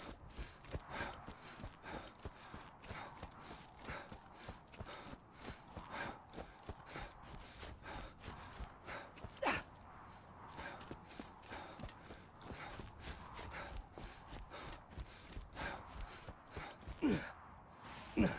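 Footsteps thud steadily on hard ground at a walking pace.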